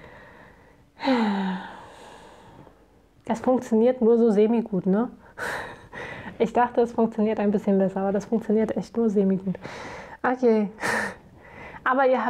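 A young woman talks calmly and close by into a microphone.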